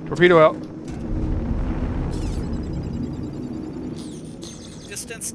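A spacecraft thruster rumbles deeply, then fades.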